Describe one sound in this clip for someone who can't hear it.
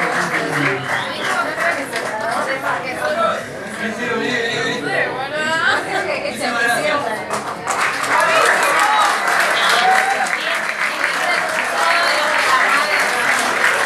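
An audience cheers and whistles loudly.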